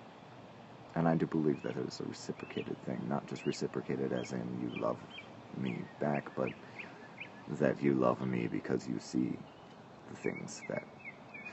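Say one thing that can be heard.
A middle-aged man talks calmly, close up.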